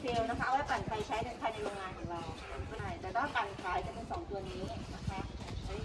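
A woman speaks nearby, explaining with animation.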